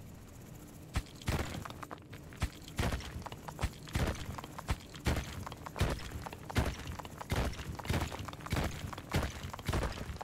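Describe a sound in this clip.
Game sound effects of rock being dug thud and crunch in quick, uneven bursts.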